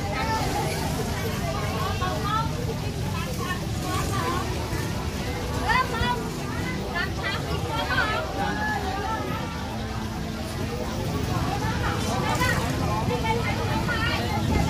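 A busy outdoor crowd murmurs in the background.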